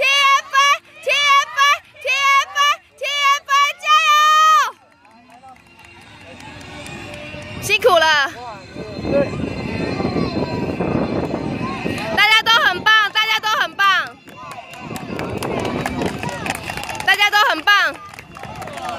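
Children cheer and shout in high voices outdoors.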